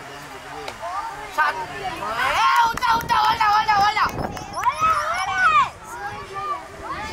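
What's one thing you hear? Young boys shout to each other across an open field.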